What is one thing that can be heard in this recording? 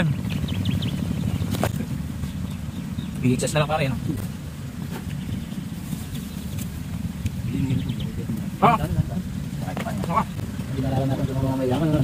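Young men talk casually nearby, outdoors.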